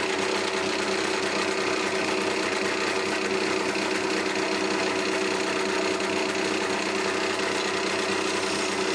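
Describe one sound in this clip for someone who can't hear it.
A wood lathe runs with a steady hum.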